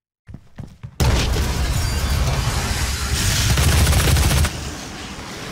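Gunfire and explosions roar loudly.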